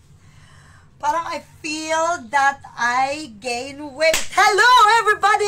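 A woman laughs and exclaims loudly.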